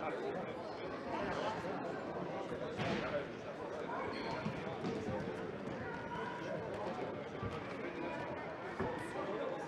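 Shoes squeak on a hard floor in a large echoing hall.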